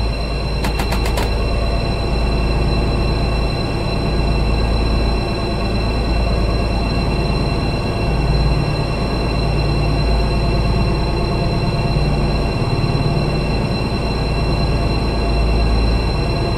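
A locomotive engine hums steadily while idling.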